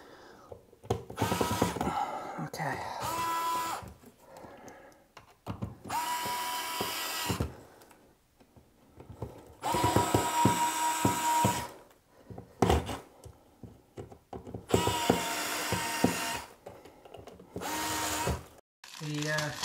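A cordless screwdriver whirs in short bursts.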